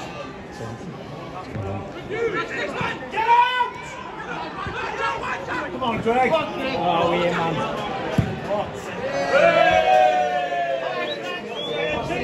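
Young men shout to each other across an open outdoor pitch.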